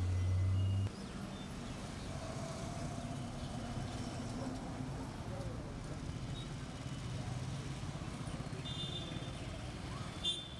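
Street traffic rumbles steadily nearby.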